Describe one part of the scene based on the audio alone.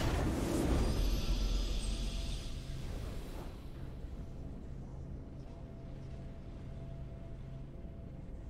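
A triumphant game chime rings out and fades.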